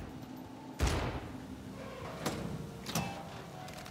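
A metal door swings open with a clank.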